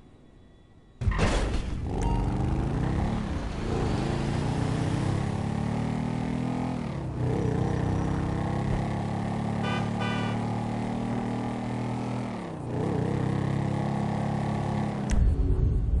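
A small motorbike engine revs and drones steadily, rising and falling as it shifts gears.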